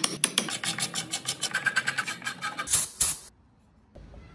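Sandpaper rubs rapidly against wood.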